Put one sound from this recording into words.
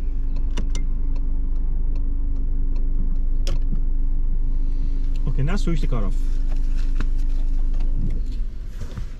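A car engine hums steadily inside the cabin.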